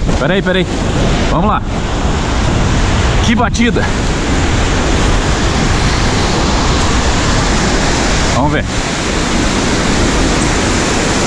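Surf breaks and washes onto a sandy beach.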